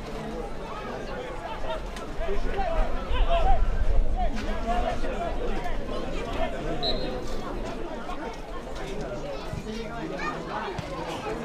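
Young men on a field shout to each other.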